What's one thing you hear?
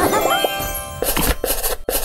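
A short cheerful victory jingle chimes.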